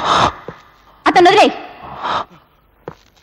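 A middle-aged woman speaks sharply and angrily up close.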